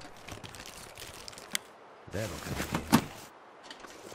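A metal box is opened and rummaged through.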